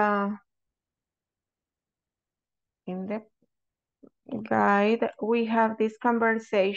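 A woman speaks clearly over an online call, with short pauses.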